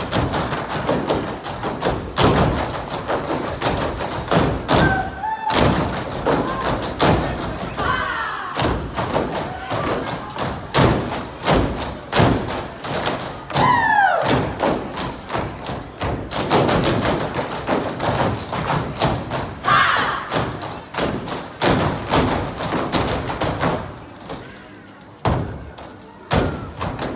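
Dancers' feet stomp in unison on a stage.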